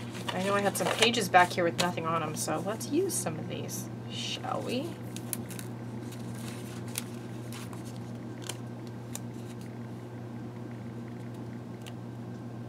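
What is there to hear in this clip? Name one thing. Paper rustles and crinkles as it is folded and handled close by.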